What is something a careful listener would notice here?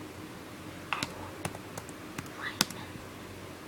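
A finger taps on a touchscreen a few times.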